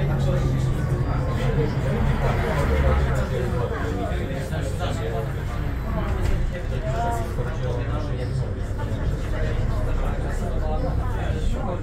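A bus engine hums steadily from inside the bus while it drives.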